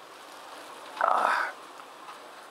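A plastic bag rustles and crinkles close by.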